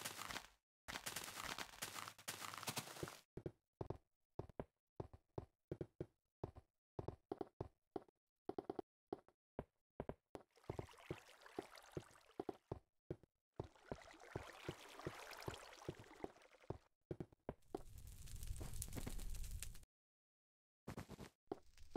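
Footsteps tread on stone and grass.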